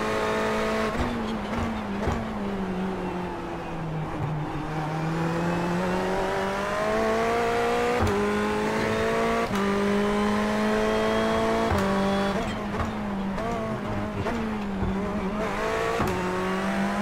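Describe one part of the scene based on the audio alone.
A racing car's gearbox clicks sharply through gear changes.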